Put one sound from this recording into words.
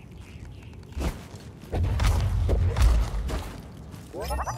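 Heavy thuds and scrapes sound as a climber grabs and pulls up onto a stone ledge.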